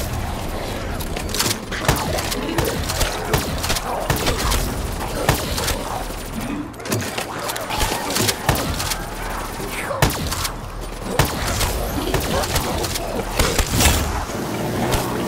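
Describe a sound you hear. A gun fires sharp shots in bursts.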